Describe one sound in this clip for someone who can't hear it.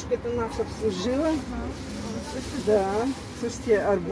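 A middle-aged woman talks close by.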